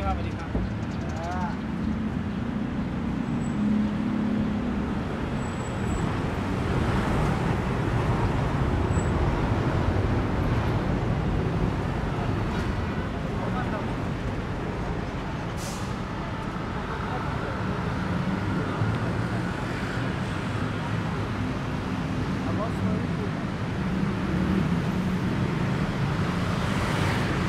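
Steady city traffic rumbles and hums outdoors.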